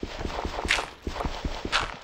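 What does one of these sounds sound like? A dirt block crumbles as it is dug away.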